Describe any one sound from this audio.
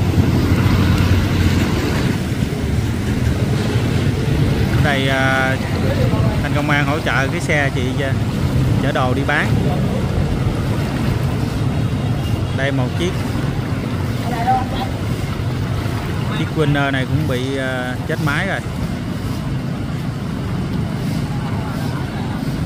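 Motorbike engines rumble steadily nearby.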